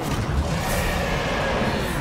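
A whirling gust of wind roars.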